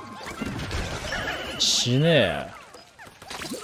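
A video game attack bursts with a loud crackling scuffle.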